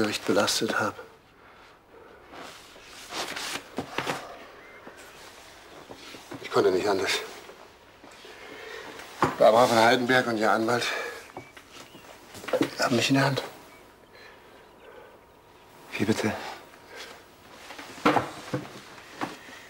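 A younger man speaks quietly nearby.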